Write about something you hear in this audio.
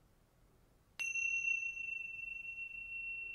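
A metal chime is struck and rings on with a clear, steady high tone.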